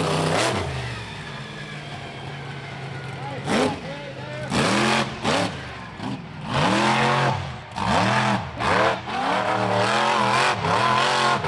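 Tyres spin and spray dirt.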